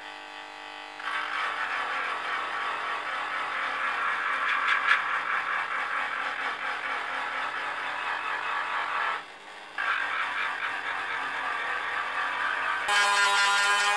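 A small rotary tool whirs loudly as it grinds a hard sheet.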